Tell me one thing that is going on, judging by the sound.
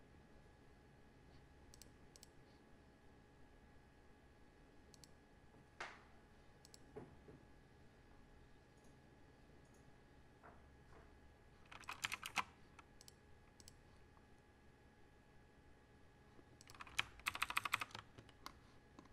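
Keys clack on a mechanical keyboard as someone types in bursts.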